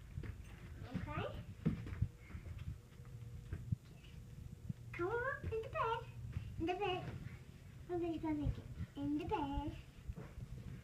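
A young child babbles and speaks in a high voice nearby.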